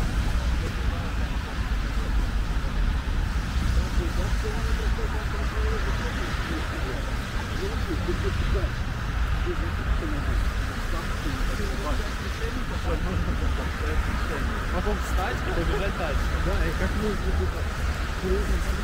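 Traffic hums steadily along a nearby road.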